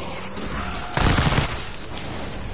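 A gun fires a loud, short burst of shots.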